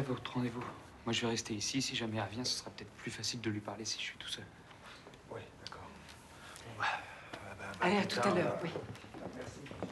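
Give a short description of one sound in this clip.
An elderly man speaks tensely up close.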